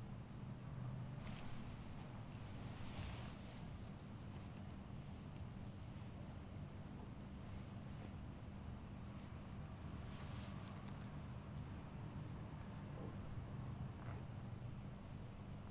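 Hands rub and knead bare skin with soft swishing strokes.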